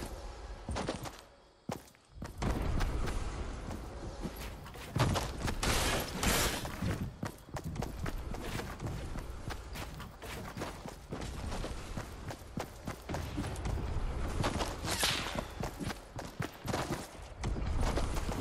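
Metal ramps clatter into place in a video game.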